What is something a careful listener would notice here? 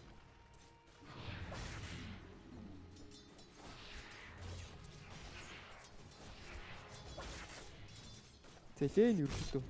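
Magic spells crackle and clash in a fast fight.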